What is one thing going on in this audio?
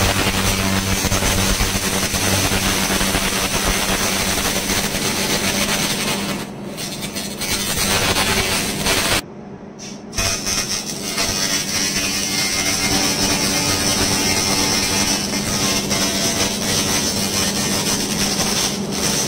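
A handheld laser hisses and crackles steadily as it sweeps over metal.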